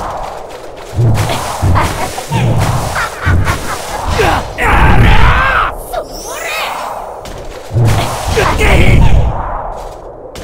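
Heavy blows thud with deep booms.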